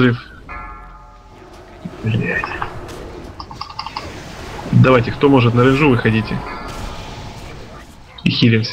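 Magic spells whoosh and chime in a fight.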